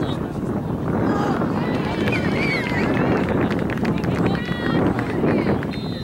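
Young players shout across an open field.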